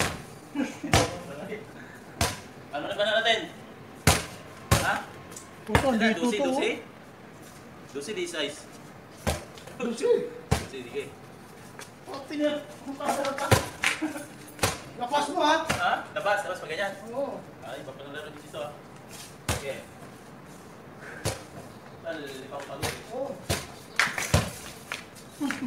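A basketball bounces sharply on a hard court outdoors.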